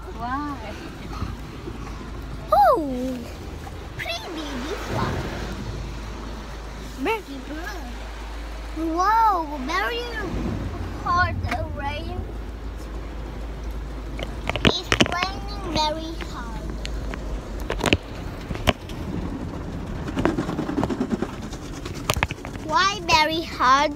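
A child talks excitedly close to a phone microphone.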